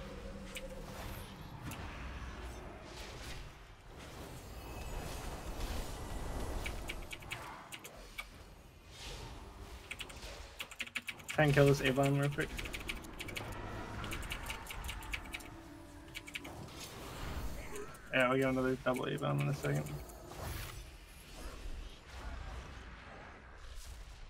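Magic spells whoosh and crackle during a battle.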